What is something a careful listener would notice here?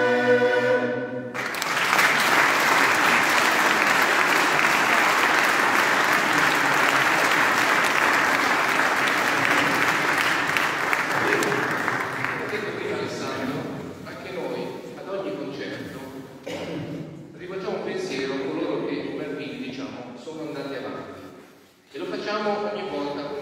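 A men's choir sings in a large echoing hall.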